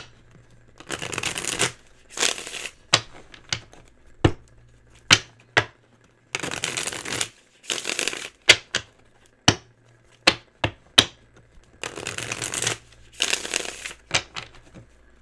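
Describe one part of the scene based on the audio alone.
A deck of cards is shuffled with quick, papery riffling bursts.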